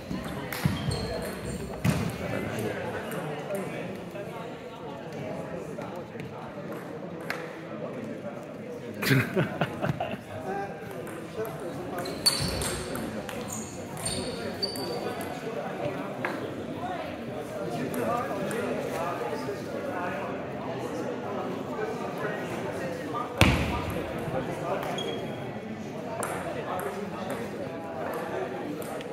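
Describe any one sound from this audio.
Several people chat and talk in the background.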